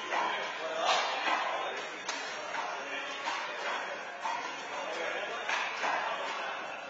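A handball slaps against a wall in an echoing indoor court.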